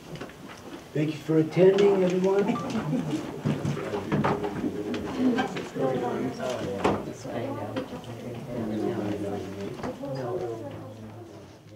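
Adults murmur and chat nearby.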